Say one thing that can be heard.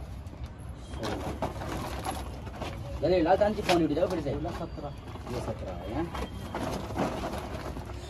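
Young men talk quietly nearby.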